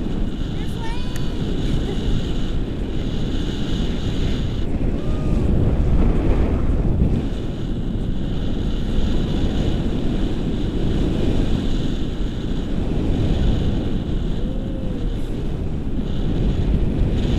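Strong wind roars steadily past a microphone, outdoors high in the air.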